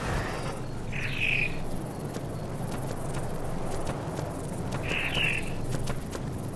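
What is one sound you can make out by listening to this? A creature screeches in short shrill calls.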